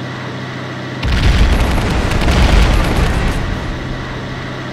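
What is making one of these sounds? A loud explosion booms and rumbles, then fades.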